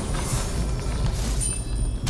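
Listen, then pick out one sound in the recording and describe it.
A bow twangs as an arrow is loosed.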